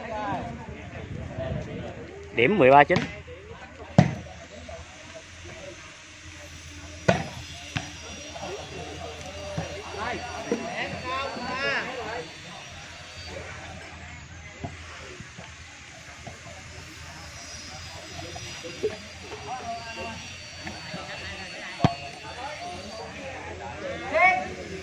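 A crowd of onlookers chatters in the background.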